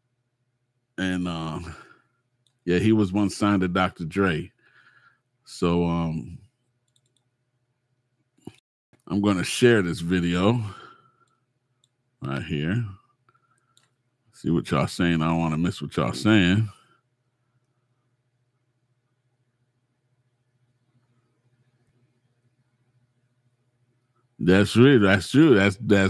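A middle-aged man talks into a close microphone, calmly and in bursts with pauses.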